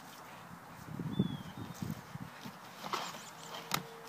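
A young man thumps down onto a wooden box.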